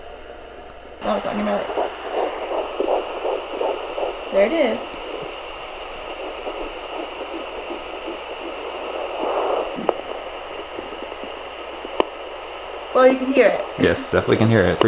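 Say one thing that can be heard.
A fetal heartbeat pulses fast and whooshing through a monitor's speaker.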